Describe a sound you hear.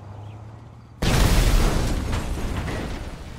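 A helicopter explodes with a loud boom.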